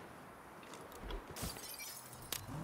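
A car door shuts.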